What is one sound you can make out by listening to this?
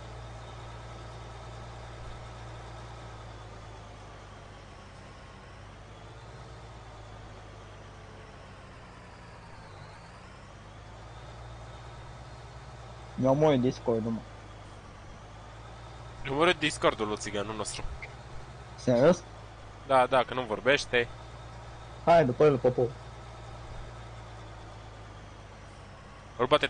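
A tractor engine hums steadily, its pitch rising and falling with speed.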